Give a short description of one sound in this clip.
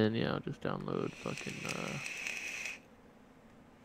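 A young man inhales from a vape with a hissing draw.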